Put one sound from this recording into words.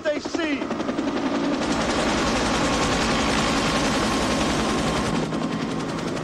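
A helicopter's rotor thuds loudly overhead.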